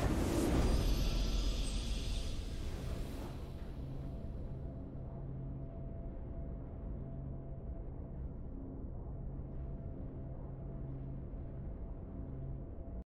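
A quiet game victory tune plays with low, steady tones.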